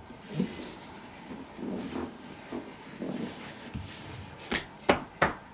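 Hands rub and press on fabric.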